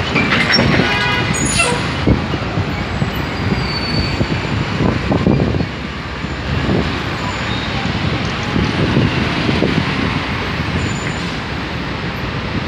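Footsteps tap on the pavement nearby.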